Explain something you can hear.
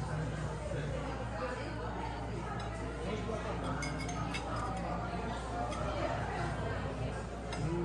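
A fork clinks against a plate.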